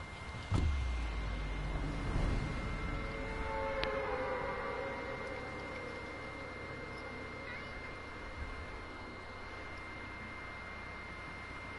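Wind rushes steadily past during a fast fall through the air.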